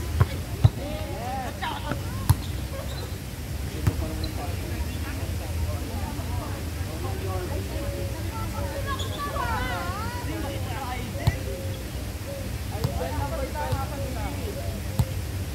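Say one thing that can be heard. Young men call out to one another during play.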